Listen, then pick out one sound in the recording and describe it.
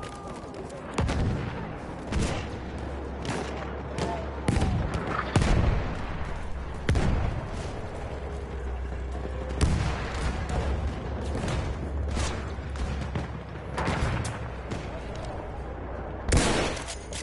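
Rifle shots crack in a video game.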